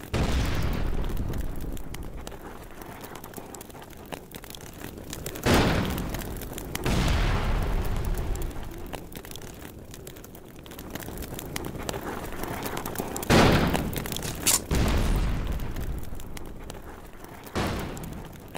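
Gunshots fire in loud single bursts.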